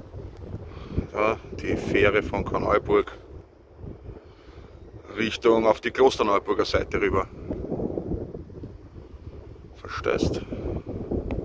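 A middle-aged man talks calmly, close by.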